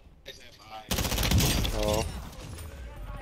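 Rapid gunfire bursts close by.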